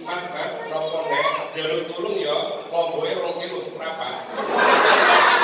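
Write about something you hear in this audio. A man speaks animatedly through a microphone in a large echoing hall.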